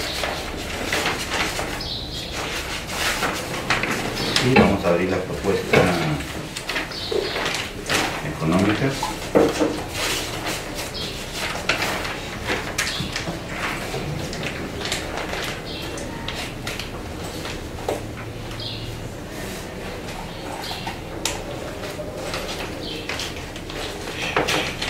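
Paper rustles as papers are handled.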